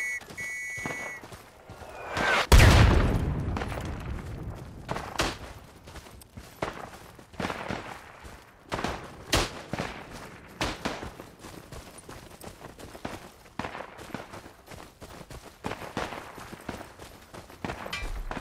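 Footsteps crunch on dry forest ground.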